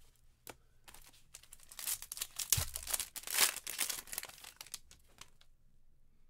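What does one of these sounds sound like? A plastic wrapper crinkles and rustles as hands tear it open.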